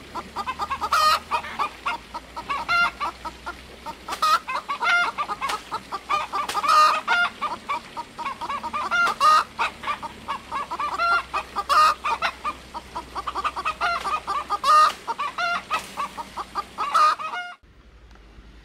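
A blade chops into bamboo.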